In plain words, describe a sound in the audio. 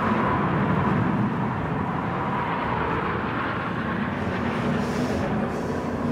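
A racing car engine drops in pitch as the car slows for a bend.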